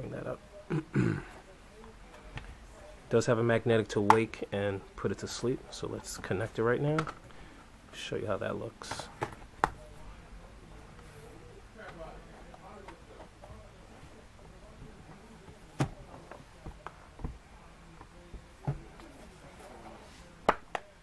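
A plastic tablet case taps and clicks as hands handle it.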